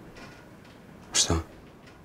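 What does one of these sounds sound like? A man asks a short, startled question.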